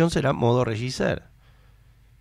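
A man speaks close into a microphone.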